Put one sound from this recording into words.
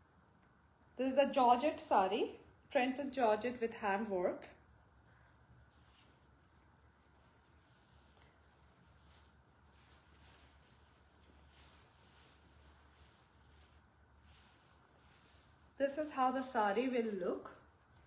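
Fabric rustles as it is handled.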